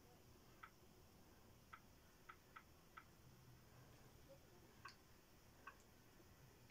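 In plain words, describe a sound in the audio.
Short soft clicks sound one after another.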